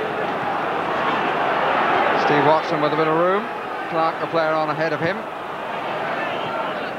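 A large crowd roars in a stadium.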